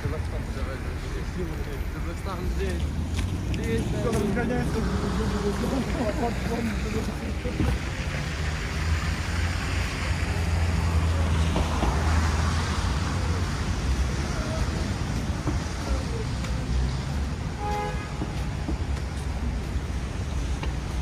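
City traffic rumbles steadily nearby.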